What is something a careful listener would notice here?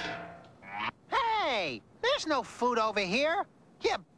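A man speaks in a high, comic, wavering cartoon voice.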